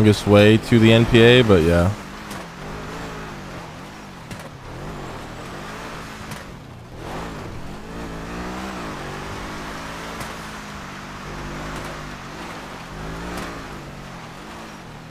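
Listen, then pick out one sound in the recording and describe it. A car engine revs and whines as the car drives over rough ground.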